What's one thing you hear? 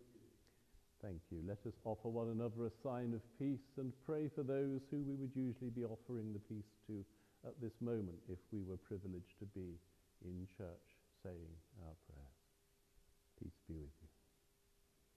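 An elderly man speaks calmly and clearly, with a slight echo of a large hall.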